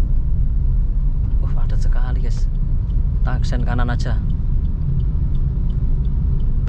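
A car engine and tyres rumble steadily from inside the car.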